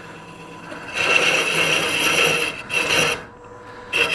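A lathe tool scrapes and shaves wood inside a spinning vessel.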